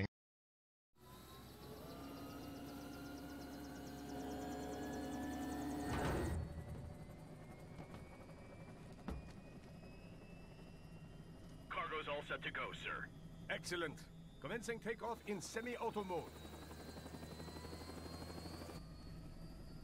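An aircraft engine hums and rises in pitch.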